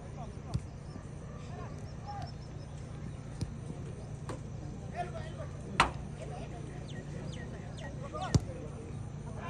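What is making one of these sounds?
Players' boots kick a football with sharp thuds.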